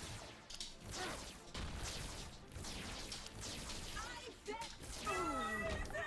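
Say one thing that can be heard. Game sound effects pop and splat rapidly.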